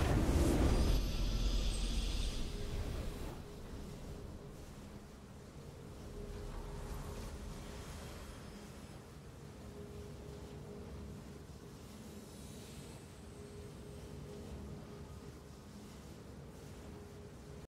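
Soft, sustained game music plays quietly.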